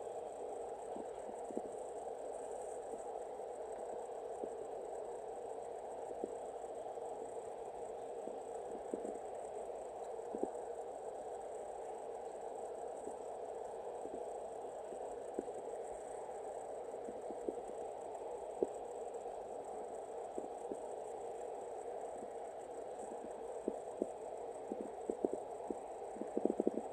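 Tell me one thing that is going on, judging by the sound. A cat licks its fur with soft, wet clicking sounds.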